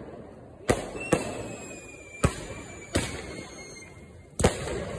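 A firework rocket whistles as it shoots upward.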